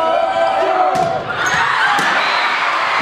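A volleyball smacks against a hand.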